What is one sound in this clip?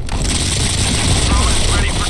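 Rapid gunshots fire in a video game.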